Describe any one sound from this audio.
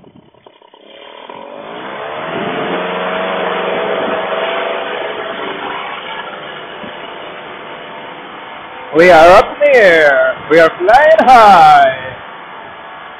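A paramotor engine revs up and drones steadily, heard through a helmet microphone.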